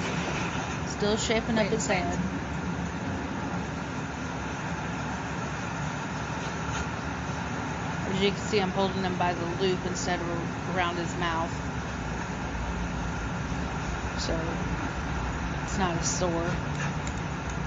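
A woman talks softly close by.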